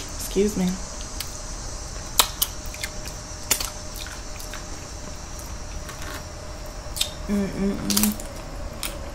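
A young woman hums briefly with pleasure while eating.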